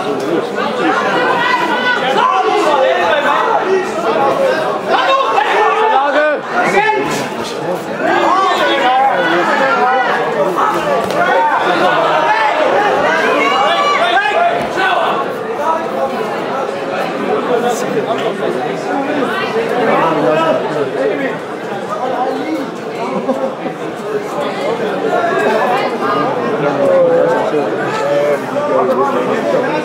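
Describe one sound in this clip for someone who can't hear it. A crowd shouts and cheers loudly in a large echoing hall.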